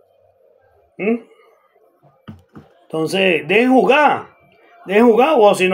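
A middle-aged man speaks with animation close to the microphone.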